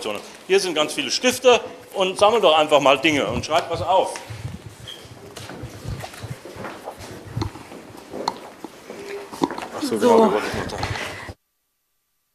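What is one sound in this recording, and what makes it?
Footsteps shuffle across a wooden floor.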